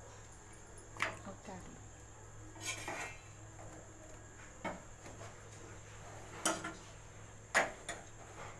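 Metal tongs clink and scrape against a pan and a gas burner.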